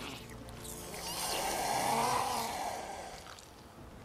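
A creature lets out a harsh, rasping shriek.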